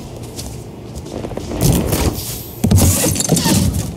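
A freezer lid swings open and thumps.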